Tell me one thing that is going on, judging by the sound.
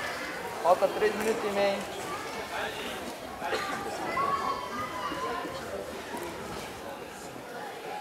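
Men's voices call out in a large echoing hall.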